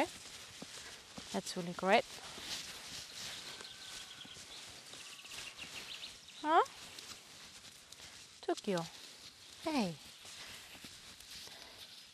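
Horse hooves thud softly on sand.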